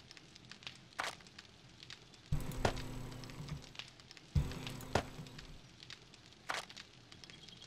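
Soft game clicks sound as items are moved about.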